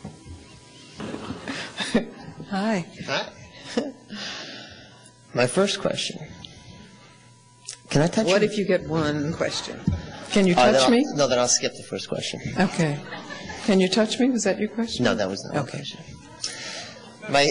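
An older woman talks with animation into a microphone.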